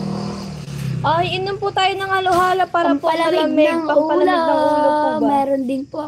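A young woman sings close to a microphone.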